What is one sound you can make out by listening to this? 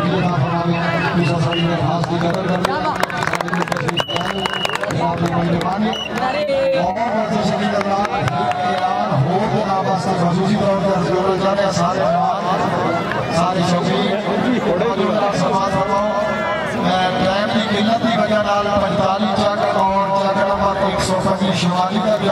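A large crowd murmurs and shouts outdoors.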